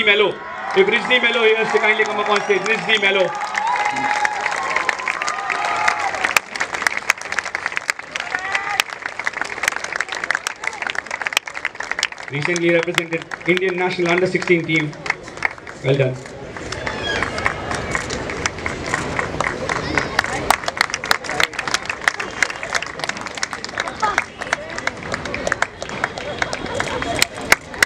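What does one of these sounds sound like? A small group of people clap their hands.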